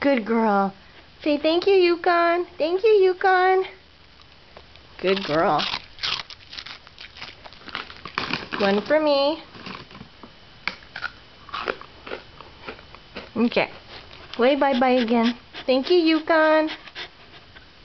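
A dog whines and yowls in long, wavering, sing-song cries close by.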